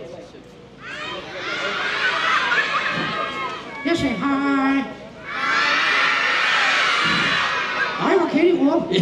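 Children in an audience shout and laugh together.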